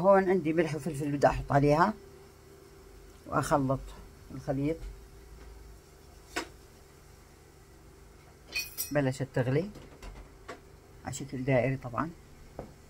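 A thick mixture bubbles and simmers in a pan.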